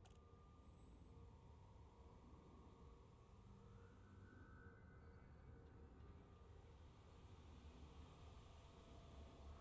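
A spacecraft's engine hums low and steady.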